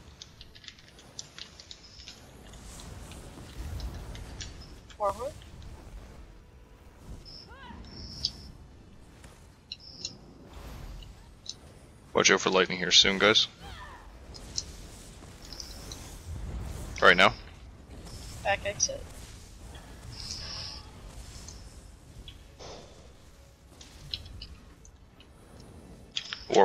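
Magic spells crackle and zap in a game battle.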